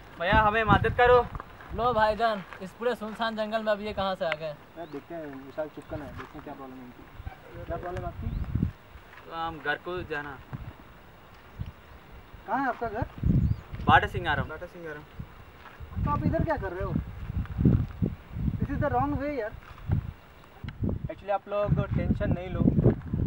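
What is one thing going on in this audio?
Young men talk with animation outdoors, close by.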